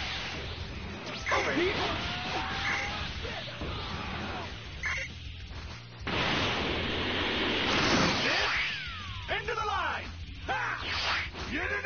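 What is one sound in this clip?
Fighters whoosh through the air.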